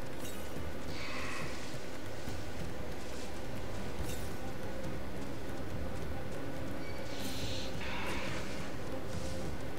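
Magical sparkles chime in short bursts.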